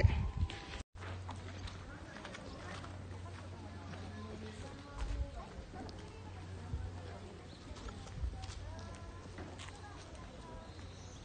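A woman talks quietly close by.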